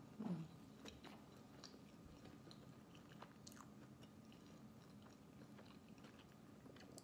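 A young woman chews food close to a microphone.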